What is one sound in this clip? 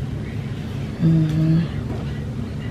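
A young girl hums or speaks briefly, close by.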